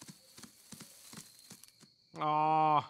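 A deer's hooves patter on the ground.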